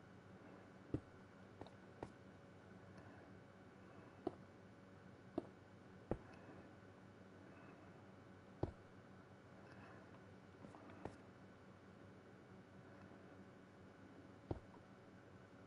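Stone blocks thud as they are placed one after another.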